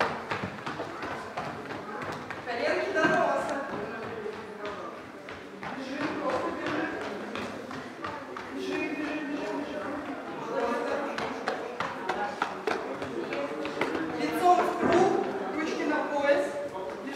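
Small children's feet patter on a wooden floor.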